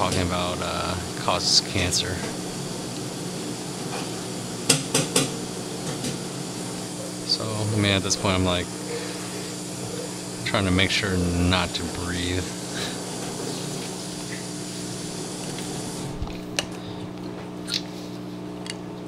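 Stiff plates click and tap together in someone's hands.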